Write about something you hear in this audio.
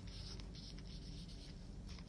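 A marker scratches on paper.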